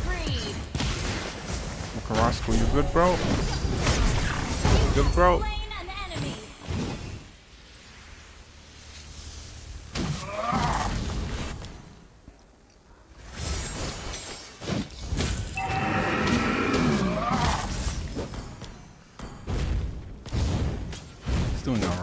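Game sound effects of spells and hits burst and whoosh.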